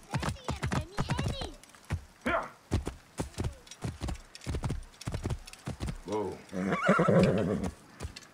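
Horse hooves pound quickly on dirt at a gallop.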